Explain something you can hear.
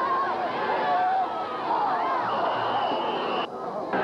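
A crowd cheers and shouts from the stands.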